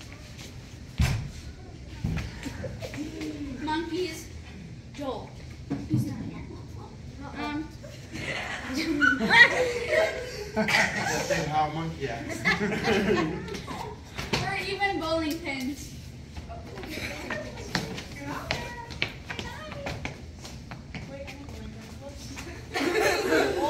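Shoes thud and squeak on a wooden floor.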